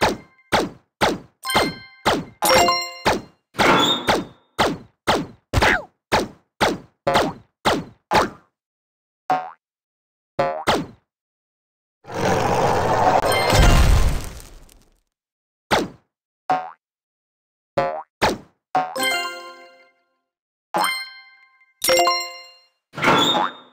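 A rubber ball bounces again and again with short springy thuds.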